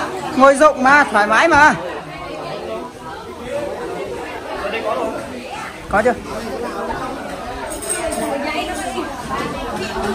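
Several men chat and laugh in a room with some echo.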